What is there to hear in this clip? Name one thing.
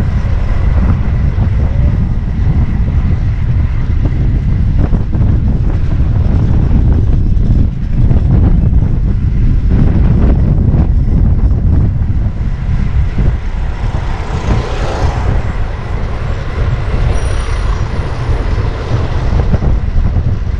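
Wind rushes loudly past the microphone of a moving bicycle.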